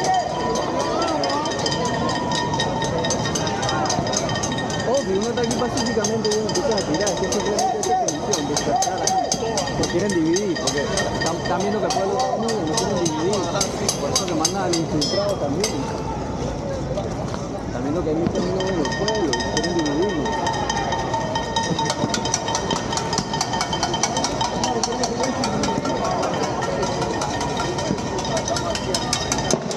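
A crowd of men and women talk and shout outdoors nearby.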